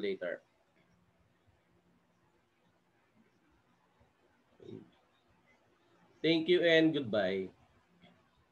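A middle-aged man speaks calmly over an online call.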